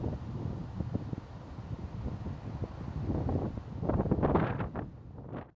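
Wind rumbles and buffets across an open hillside.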